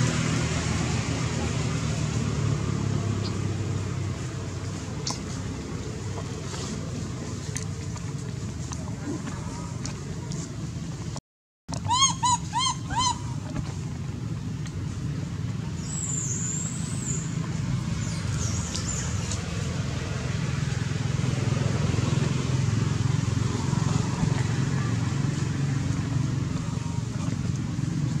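Leaves and branches rustle as a small monkey climbs through a tree.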